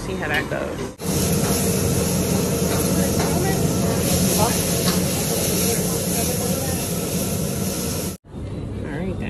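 Flames roar and food sizzles in a hot wok.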